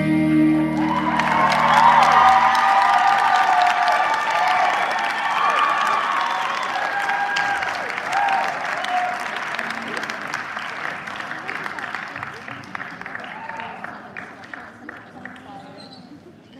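An audience applauds and cheers in a large hall, then slowly dies down.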